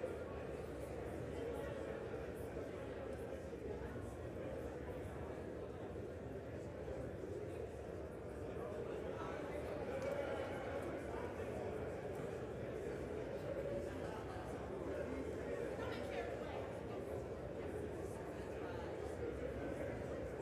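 A crowd of men and women murmur and chat in a large echoing hall.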